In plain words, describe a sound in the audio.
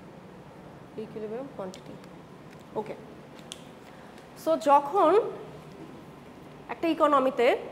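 A woman speaks with animation, lecturing.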